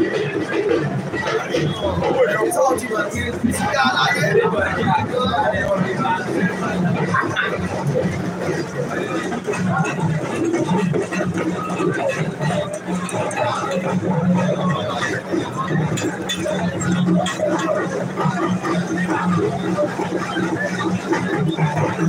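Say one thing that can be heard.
A crowd of men and women chatter outdoors throughout.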